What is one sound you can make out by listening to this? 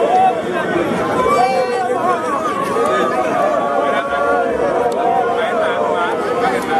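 A large outdoor crowd of men and women shouts and chants loudly all around.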